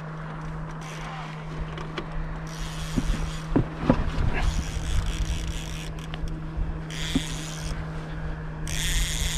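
Wind rumbles outdoors over open water.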